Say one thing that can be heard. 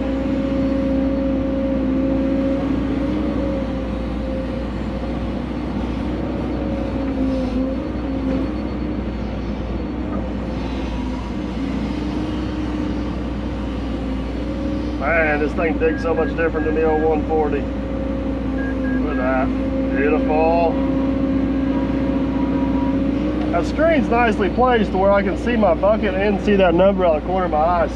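An excavator engine hums steadily close by.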